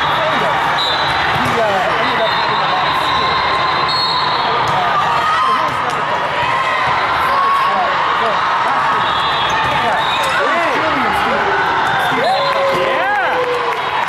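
A volleyball thuds off a player's arms.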